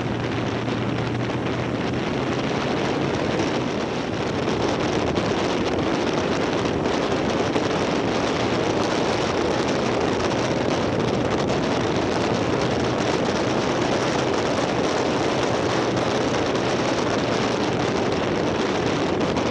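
Wind roars loudly across a microphone on a moving motorcycle.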